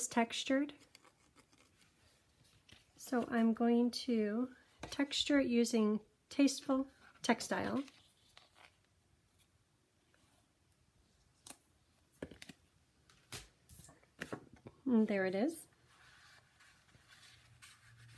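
Card stock rustles and slides as it is handled.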